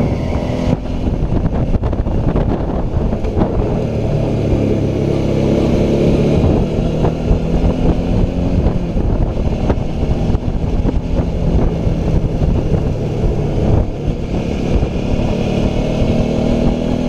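A motorcycle engine hums and changes pitch as the rider shifts gears.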